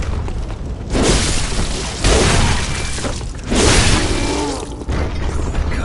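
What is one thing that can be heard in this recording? Blows land with heavy thuds and slashes in a fight.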